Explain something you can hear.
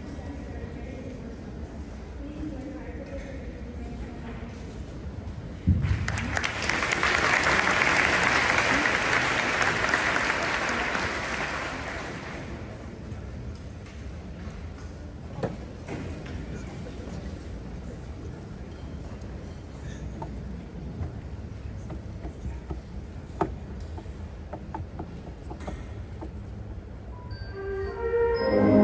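An audience murmurs in a large echoing hall.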